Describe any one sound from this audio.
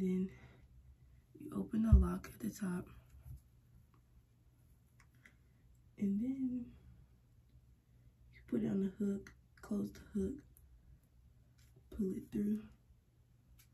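A young woman talks calmly and close by, in short bursts with pauses.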